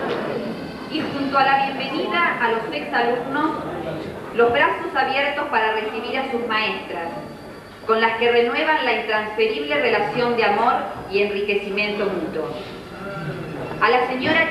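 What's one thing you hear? A woman reads out through a microphone.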